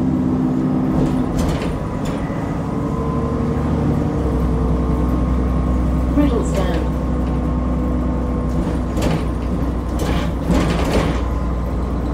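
Loose fittings on a bus rattle and clatter as it moves.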